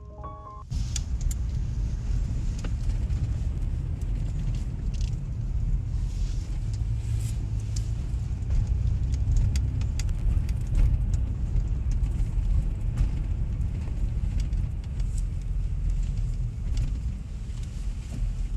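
A car engine hums low and steady from inside the car as it drives slowly.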